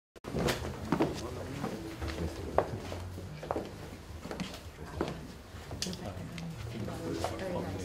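A crowd of men and women murmurs and chats nearby.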